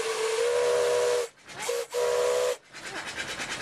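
A steam whistle blows loudly in short blasts.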